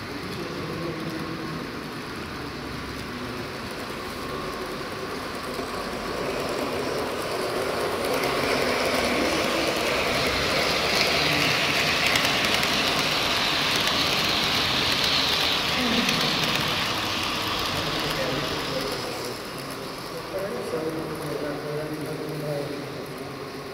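A model train rattles and hums along its track, growing louder as it passes close by and then fading.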